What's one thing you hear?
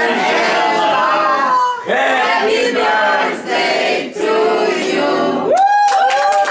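A group of men and women sing together close by.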